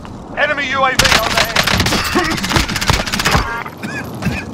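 A rifle fires rapid bursts of gunshots up close.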